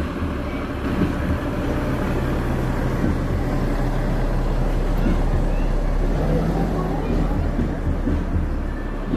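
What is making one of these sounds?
A large truck's diesel engine rumbles as it drives slowly past close by.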